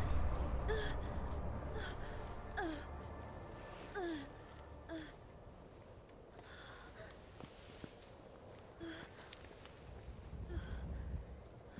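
A young woman groans and gasps in pain close by.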